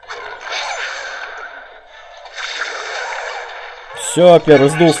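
Fantasy battle sound effects clash and whoosh as characters fight.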